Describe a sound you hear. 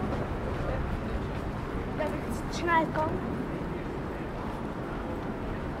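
A tram hums along rails in the distance.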